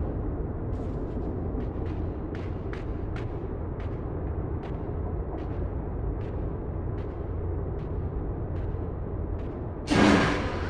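Light footsteps patter steadily.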